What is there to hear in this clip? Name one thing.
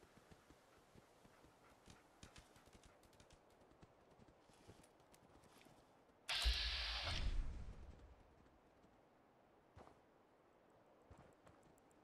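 Footsteps crunch softly over dry ground and brush.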